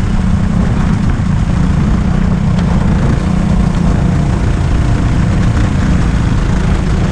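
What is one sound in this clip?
A go-kart engine drones loudly and steadily up close.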